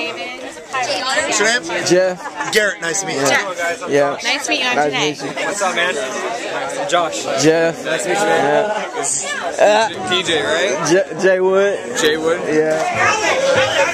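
A crowd of young men and women chatters and talks loudly nearby.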